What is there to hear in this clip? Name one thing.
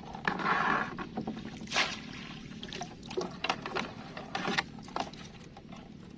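A wire trap rattles and clinks as it is handled.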